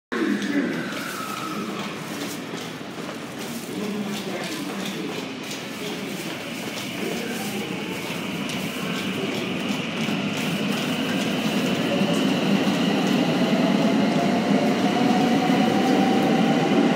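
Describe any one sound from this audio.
A train pulls into a station and rumbles past, growing louder.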